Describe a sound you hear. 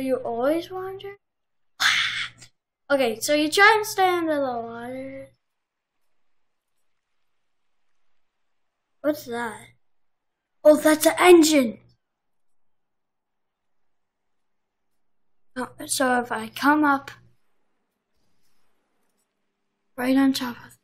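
A young boy talks with animation close to a microphone, in short bursts with pauses.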